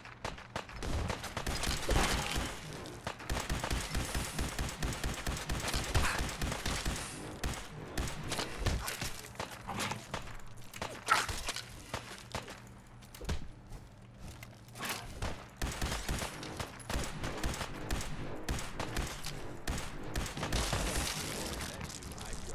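A laser rifle fires in rapid bursts.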